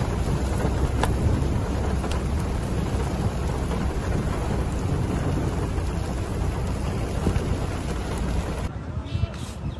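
Wind blusters roughly against the microphone outdoors.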